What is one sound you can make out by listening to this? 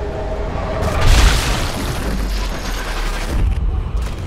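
A bullet strikes a skull with a heavy, wet crunch.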